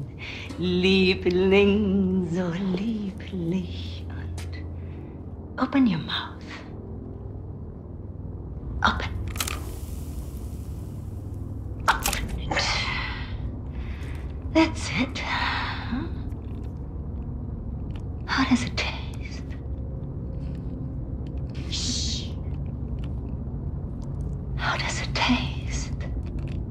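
An elderly woman speaks calmly and mockingly, close by.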